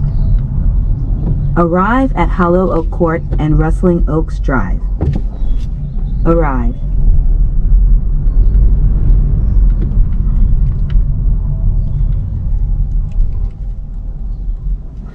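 A car drives steadily along a road, a low rumble heard from inside.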